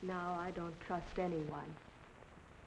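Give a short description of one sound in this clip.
A young woman speaks softly and questioningly.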